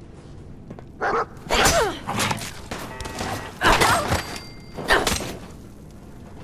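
A man shouts angrily up close.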